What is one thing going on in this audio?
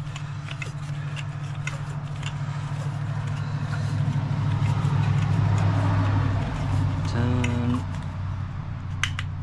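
A small engine runs with a steady low rumble.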